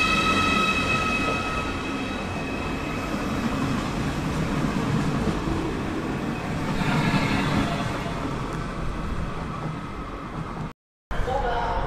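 A high-speed train glides past close by with an electric whine.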